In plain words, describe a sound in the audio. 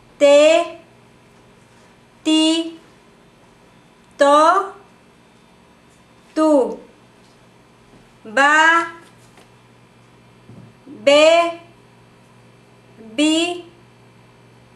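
A woman clearly sounds out short syllables one at a time, close to the microphone, with pauses between them.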